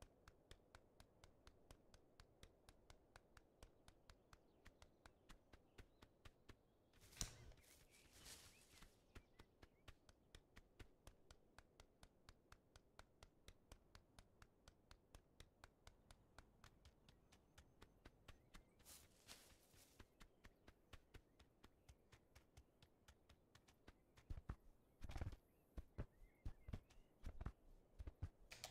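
A goose's webbed feet patter quickly and steadily along a path.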